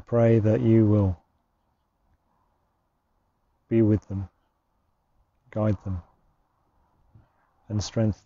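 A man speaks slowly and calmly into a close microphone, with long pauses.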